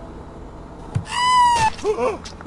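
A blade stabs into a body with a sudden wet thud.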